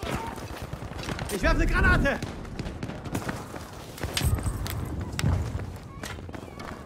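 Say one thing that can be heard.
Footsteps run over a stone path.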